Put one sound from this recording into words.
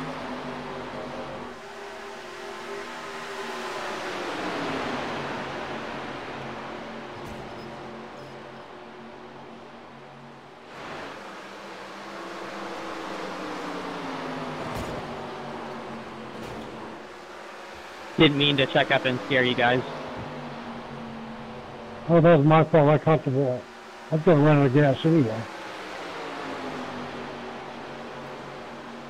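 Race car engines roar and whine as cars speed past.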